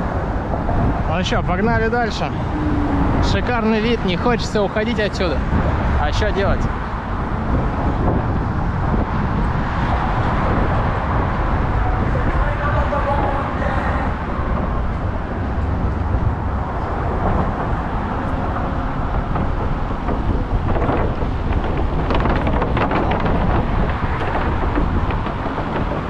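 Traffic rumbles steadily on a road below.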